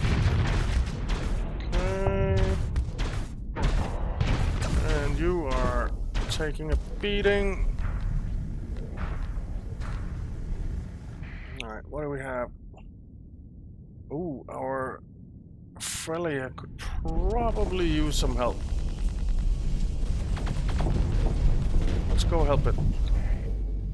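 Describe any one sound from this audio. Laser weapons fire in quick zapping bursts.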